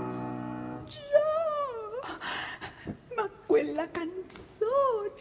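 An elderly woman sings dramatically, with wavering held notes and sudden breaks.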